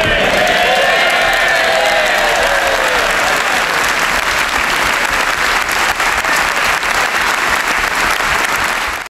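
A large crowd applauds loudly in a big echoing hall.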